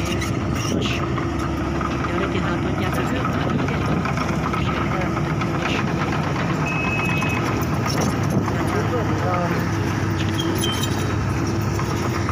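An excavator engine rumbles steadily nearby.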